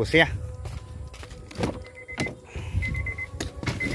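A car door unlatches and swings open.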